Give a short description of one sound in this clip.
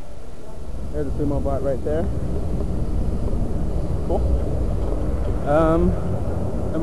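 A young man talks briefly nearby.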